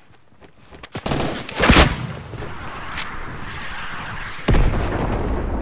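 A rocket launcher fires with a whoosh and an explosion booms.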